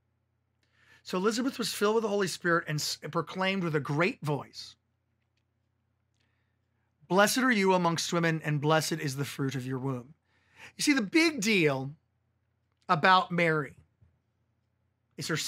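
A man speaks calmly and clearly into a nearby microphone, pausing now and then.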